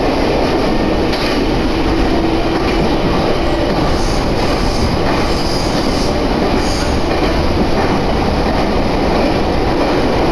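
Wind rumbles and hisses across the microphone outdoors.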